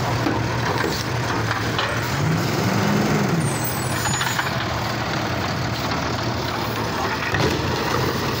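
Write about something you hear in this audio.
A plastic bin clatters and bangs against metal.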